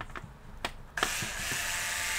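An electric screwdriver whirs.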